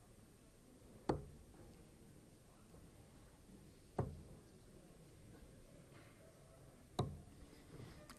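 Darts thud into a board one after another.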